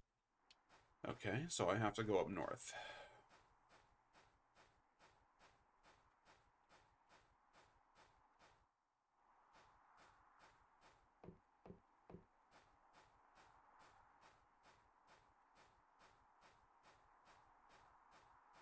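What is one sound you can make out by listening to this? Footsteps crunch steadily and quickly through snow.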